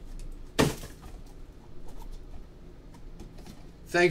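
Cardboard boxes clatter as they are moved.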